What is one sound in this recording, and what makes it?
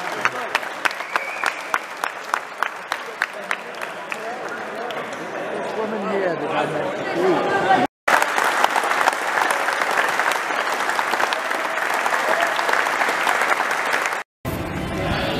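A crowd claps in rhythm in a large echoing hall.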